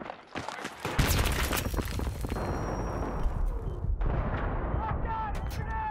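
Gunfire crackles in rapid bursts close by.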